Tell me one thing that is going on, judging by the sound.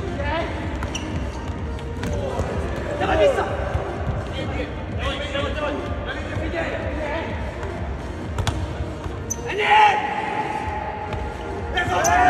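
A ball thuds against a foot and bounces off a table.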